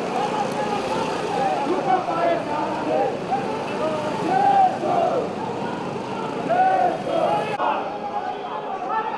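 A large crowd of men shouts and clamours close by.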